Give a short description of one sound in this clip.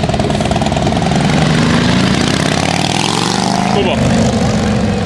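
A motorcycle engine revs and roars as it passes.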